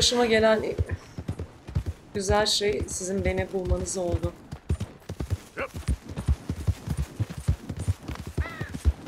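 Horse hooves thud steadily on soft ground.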